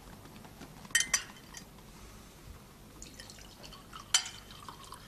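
Glass clinks against glass.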